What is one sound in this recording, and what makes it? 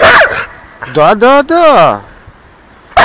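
A dog whines in a rising and falling pitch.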